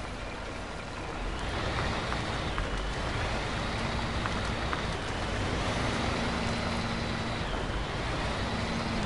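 Truck tyres crunch over a gravel road.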